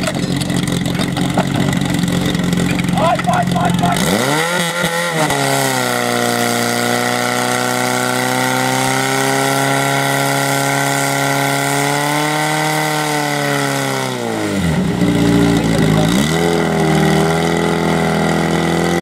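A fire pump engine roars and revs up, holding a high steady drone.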